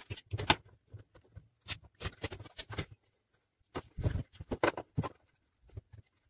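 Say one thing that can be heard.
Hands knock and scrape a wooden strip against a table.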